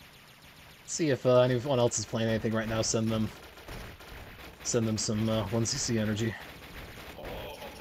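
Upbeat electronic game music plays loudly.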